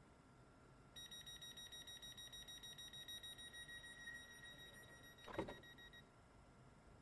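Door warning beeps sound repeatedly.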